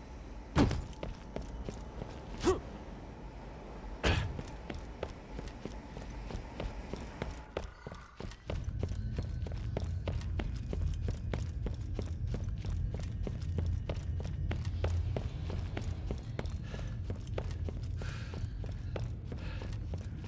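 Footsteps clank steadily on a metal floor.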